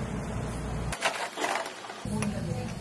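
A spoon scoops frozen berries.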